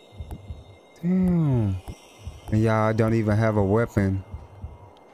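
A young man speaks loudly and with animation into a microphone, his voice sliding in pitch.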